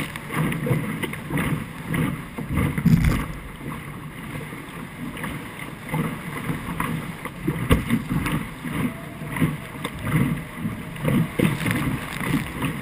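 Water splashes and rushes against a fast-moving boat's hull.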